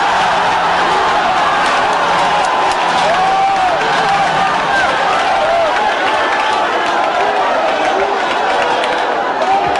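A large crowd cheers and sings loudly.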